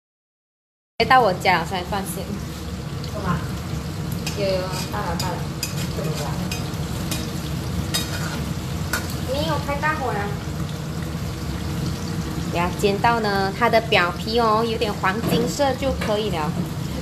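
Liquid bubbles and simmers in a pan.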